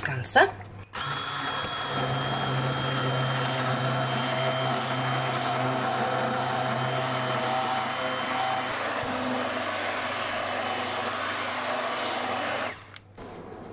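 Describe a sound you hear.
A hand blender whirs steadily in thick soup.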